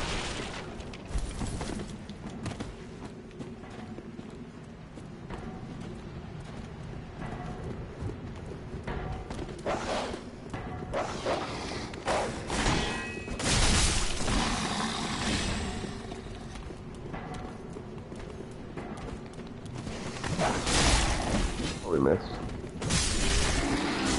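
Swords clash and strike in a game fight.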